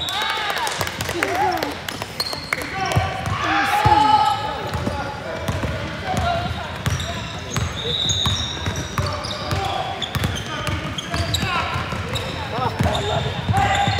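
Young girls shout and call out to each other in a large echoing gym.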